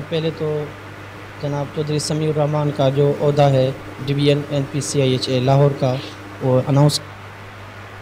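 A middle-aged man speaks steadily into a close microphone.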